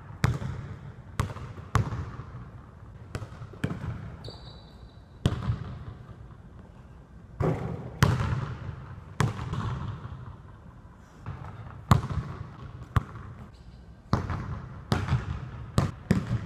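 A basketball bounces on a wooden floor, echoing through a large hall.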